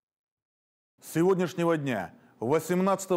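A man speaks calmly and formally into a microphone.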